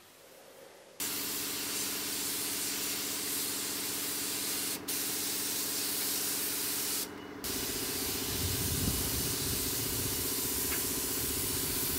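A spray gun hisses steadily as paint is sprayed.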